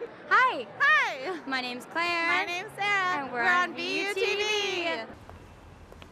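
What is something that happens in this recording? A second young woman answers cheerfully into a microphone.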